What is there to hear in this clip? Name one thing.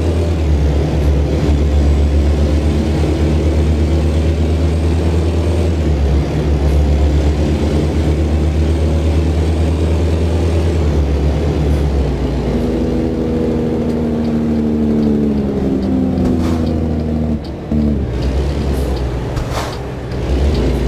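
A heavy truck engine drones steadily, its pitch shifting as the gears change.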